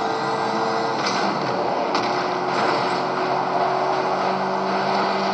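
Cars crash and scrape together with loud impacts.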